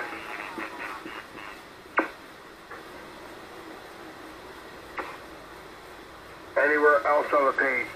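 A man talks through a radio loudspeaker, thin and narrow-sounding.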